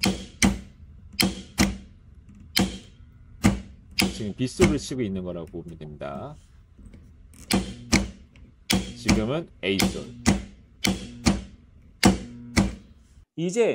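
A solenoid valve clicks sharply again and again.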